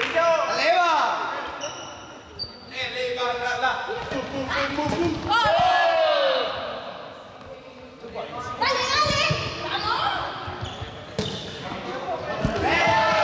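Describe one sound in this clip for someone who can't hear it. Children shout and cheer excitedly in a large echoing hall.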